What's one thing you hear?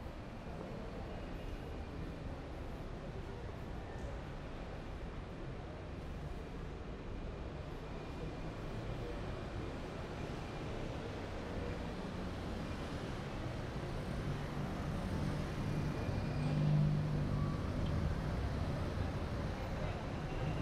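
Street traffic rumbles steadily nearby, growing louder.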